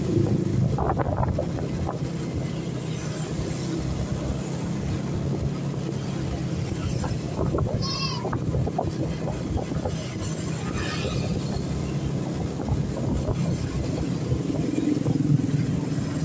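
A motor scooter engine hums steadily while riding along a street.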